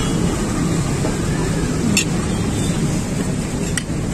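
A metal spoon scrapes and clinks against a plate.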